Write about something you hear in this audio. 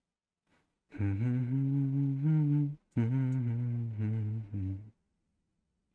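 Singers sing in harmony through a loudspeaker.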